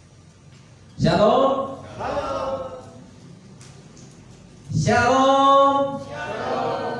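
A man sings loudly through a microphone and loudspeakers in an echoing hall.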